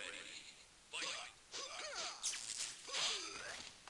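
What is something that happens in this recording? Blows land with sharp thuds and smacks.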